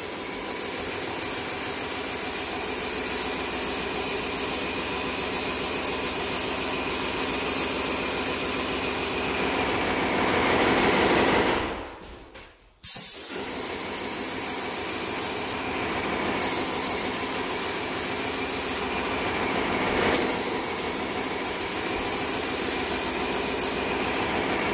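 A sprayer pump motor drones steadily.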